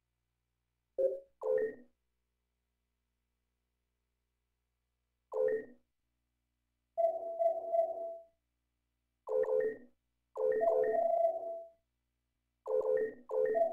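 Soft electronic chimes sound one at a time as menu choices are confirmed.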